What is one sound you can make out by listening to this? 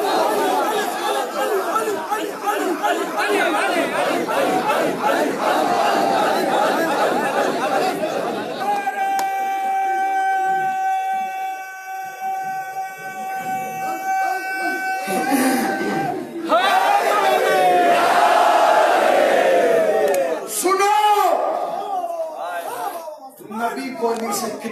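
A large crowd of men chants loudly together.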